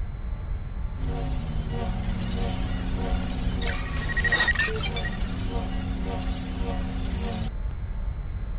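Electronic tones beep and chirp.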